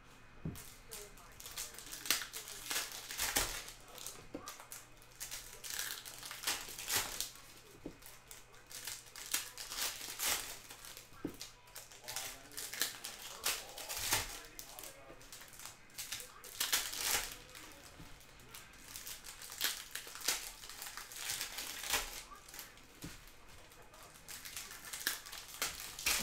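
Foil wrappers crinkle and tear as packs are ripped open.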